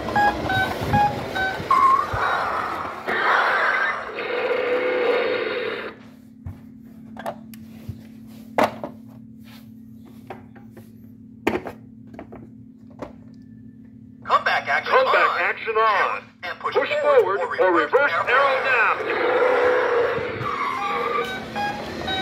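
A toy car plays loud electronic sound effects and jingles.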